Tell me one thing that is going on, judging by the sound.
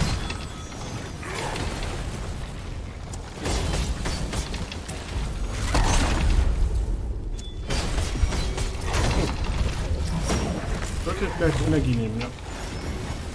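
Swords clash and magic blasts boom in a game fight.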